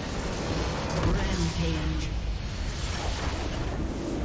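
A large structure explodes with a booming blast.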